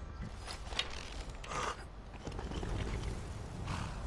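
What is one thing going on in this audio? A bowstring creaks as a bow is drawn.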